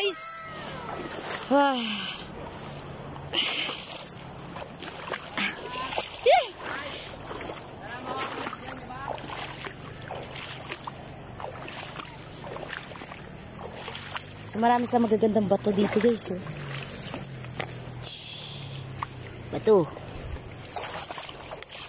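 A shallow river flows and ripples over stones.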